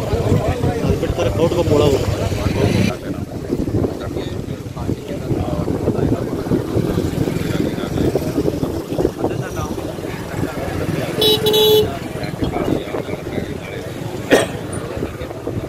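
A crowd of men talk over each other outdoors.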